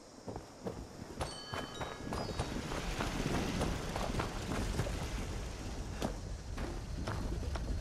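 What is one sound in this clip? Heavy footsteps crunch on gravel.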